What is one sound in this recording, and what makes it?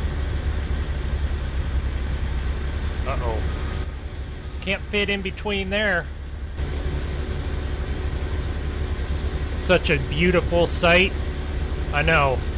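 A large harvester engine drones steadily.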